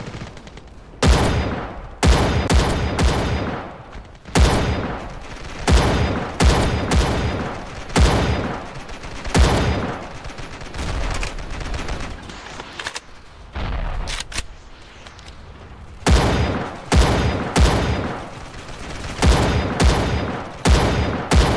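A rifle fires loud shots one after another, each ringing out with a long echo.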